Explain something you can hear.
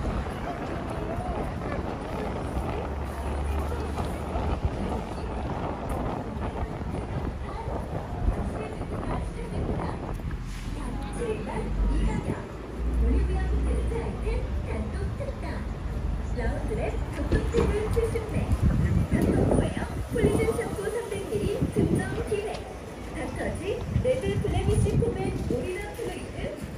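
Men and women chatter nearby outdoors on a busy street.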